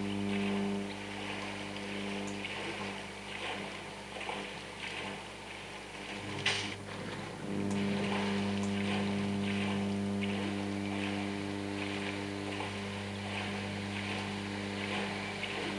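Water splashes and sloshes as a swimmer paddles.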